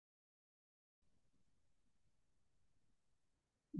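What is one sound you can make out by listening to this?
A man speaks calmly and softly, close to a microphone.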